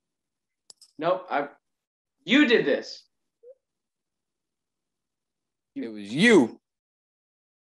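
A second young man speaks over an online call.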